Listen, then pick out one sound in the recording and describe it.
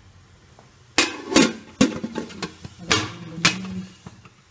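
A metal lid clanks against a steamer pot.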